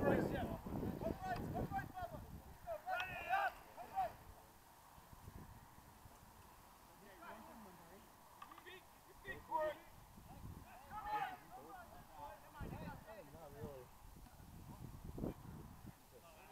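Young men shout and call out to each other across an open field.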